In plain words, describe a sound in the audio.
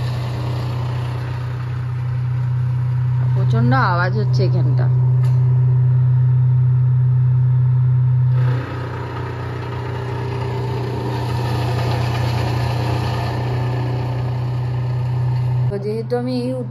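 A truck engine drones steadily outside.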